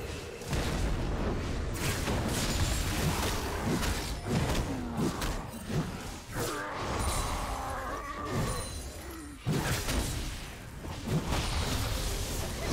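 Magic blasts and weapon hits crackle and burst in a video game battle.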